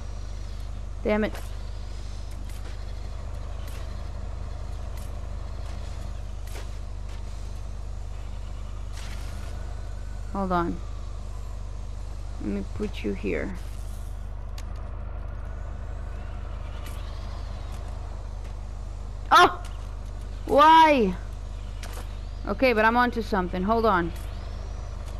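A young woman speaks in short bursts close to a microphone.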